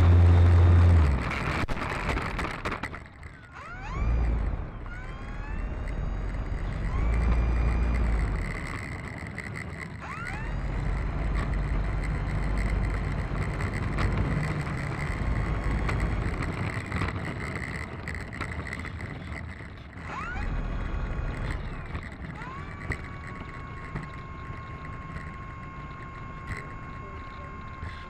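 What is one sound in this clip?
An electric motor whines and revs up and down as a propeller spins close by.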